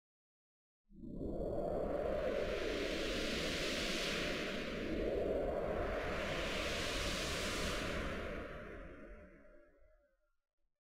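A synthesizer plays a swelling, hissing electronic sweep.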